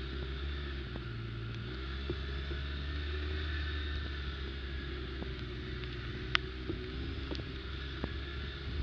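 An all-terrain vehicle's frame rattles and knocks over bumps.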